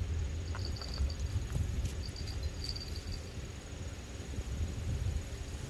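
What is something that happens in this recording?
Wind buffets the microphone outdoors with a low, uneven rumble.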